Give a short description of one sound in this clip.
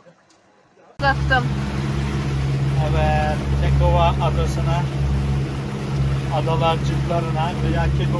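A boat engine rumbles loudly and steadily close by.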